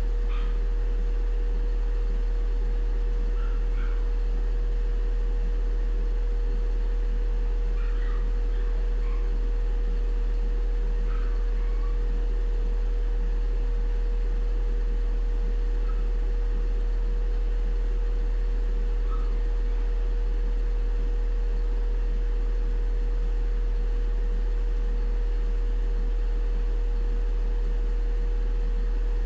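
A television plays faintly in the room.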